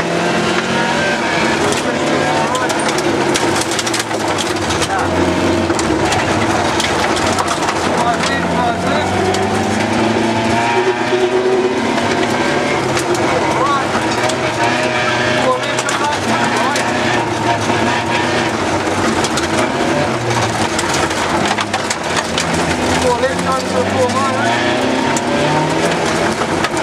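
Stones rattle against the underside of a car.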